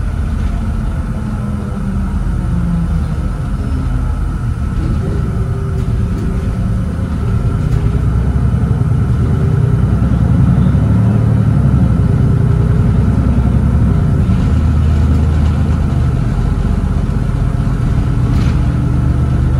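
A diesel city bus engine drones from inside the cabin while under way.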